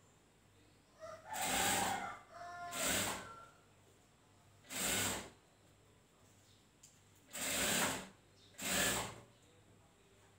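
A sewing machine whirs in short bursts, stopping and starting.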